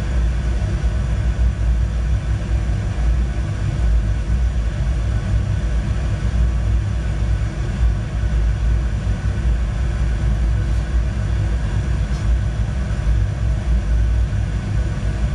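A jet engine rumbles low and steadily.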